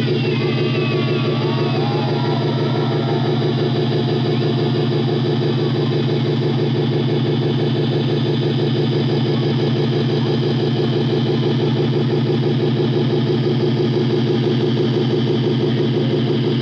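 A rock band plays loud live music with a fast, steady beat.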